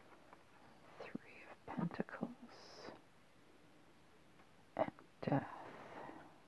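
Playing cards rustle and tap as hands handle them.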